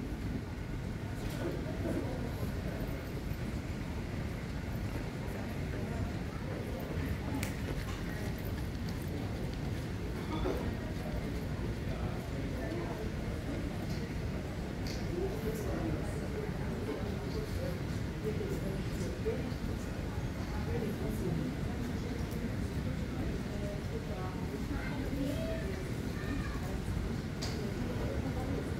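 A low, steady hum and murmur fill a large indoor hall.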